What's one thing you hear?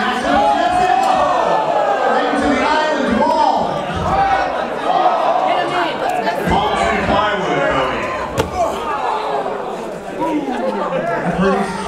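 Bodies thud heavily against a wooden bar.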